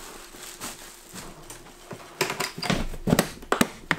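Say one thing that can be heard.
A plastic lid snaps shut.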